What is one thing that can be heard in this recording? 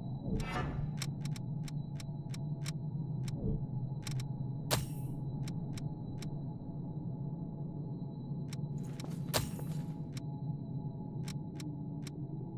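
Short soft menu clicks tick again and again.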